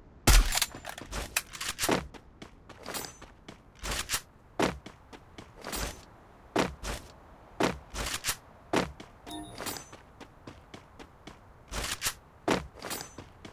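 Footsteps run on grass and pavement.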